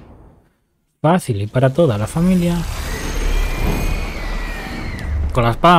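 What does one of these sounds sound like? A burst of magic crackles and whooshes.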